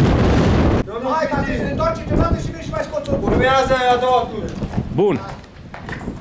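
A man speaks nearby, calmly.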